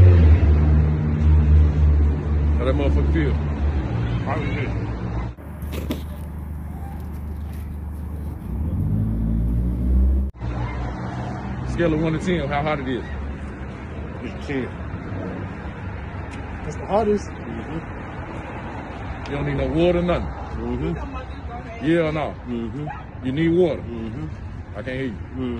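A young man raps with energy close by.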